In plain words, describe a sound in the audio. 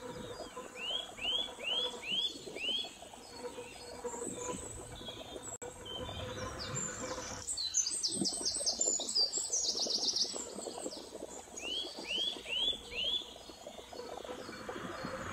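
A glass jar rolls and clinks over a wooden floor.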